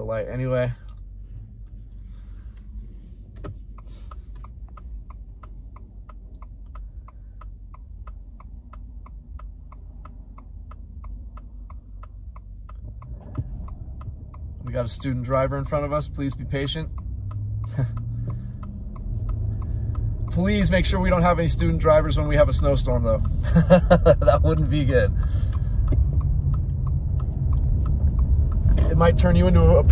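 A car engine hums low inside the car and grows louder as the car speeds up.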